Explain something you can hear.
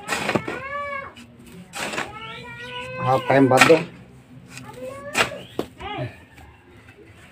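A hoe scrapes and thuds into dirt.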